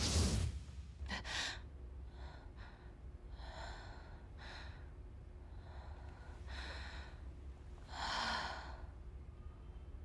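A young woman breathes heavily and sighs close by.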